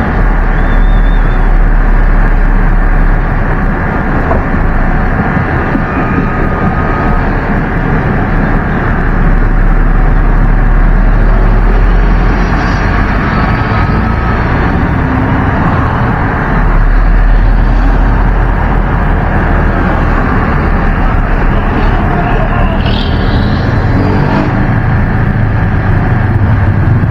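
A vehicle engine rumbles steadily as it drives through traffic.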